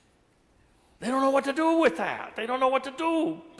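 An elderly man speaks with animation through a microphone in a reverberant hall.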